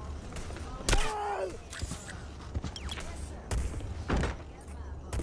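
Pistol shots ring out.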